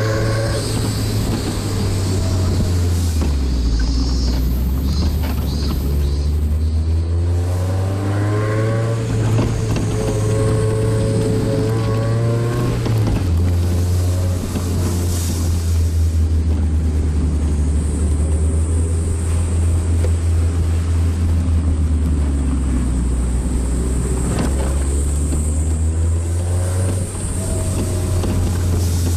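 Tyres roll along a road.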